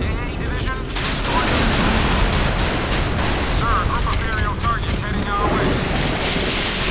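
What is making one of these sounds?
Heavy explosions boom and roar.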